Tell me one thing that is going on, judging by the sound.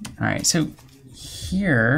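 A game piece clicks on a board.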